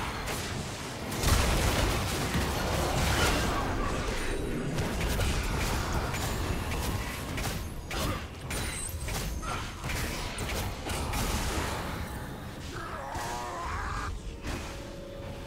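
Game weapon hits thud and clash.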